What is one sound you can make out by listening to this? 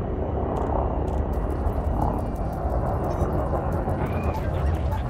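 A spacecraft engine hums with a deep, steady rumble.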